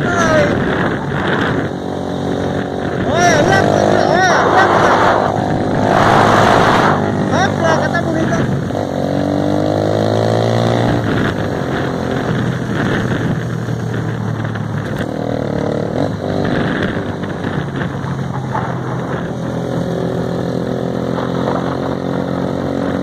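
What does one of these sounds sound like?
A motorcycle engine drones steadily, rising and falling in pitch as it speeds up and slows.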